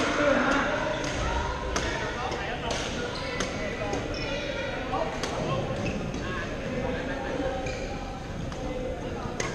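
Paddles strike plastic balls with sharp pops in a large echoing gym.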